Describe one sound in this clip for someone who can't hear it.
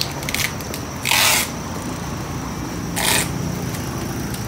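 A cardboard box scrapes and thumps as it is pushed into place.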